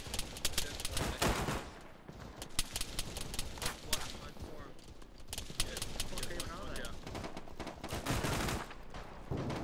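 Explosions boom nearby and rumble.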